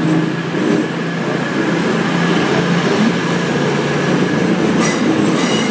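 A train rumbles and hums past close by along a platform.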